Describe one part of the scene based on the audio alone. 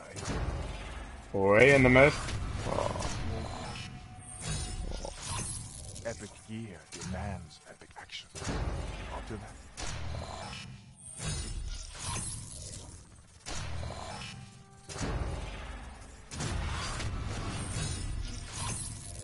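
Electronic whooshes and chimes sound as cards are revealed one by one.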